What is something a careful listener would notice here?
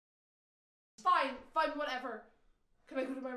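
A young woman speaks sharply nearby.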